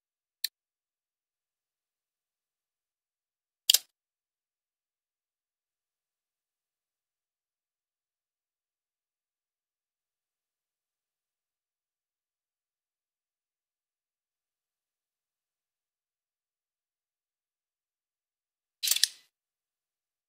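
A game menu makes short, sharp clicking blips.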